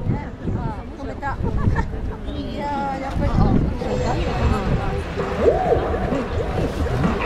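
A large stadium crowd chatters outdoors.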